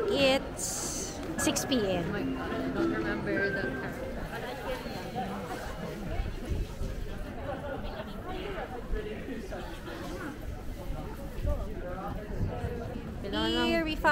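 A crowd of people chatters and talks all around.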